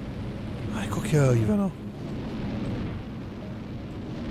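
A rocket engine roars.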